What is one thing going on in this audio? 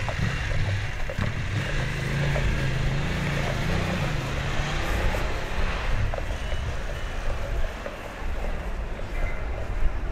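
Horse hooves clop on a stone pavement.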